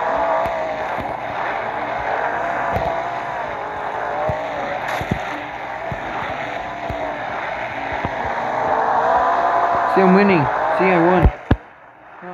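A monster truck engine roars and revs steadily.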